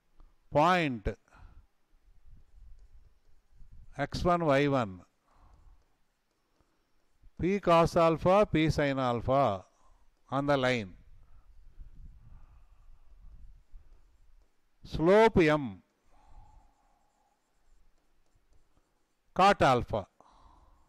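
A man lectures, speaking in short phrases with pauses.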